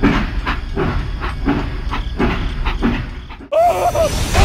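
A toy train rattles along a plastic track.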